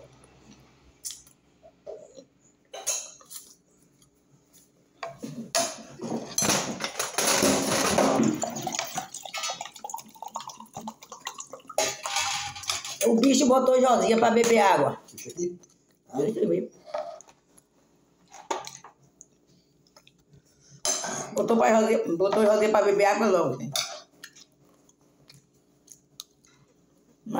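A spoon scrapes against a plate.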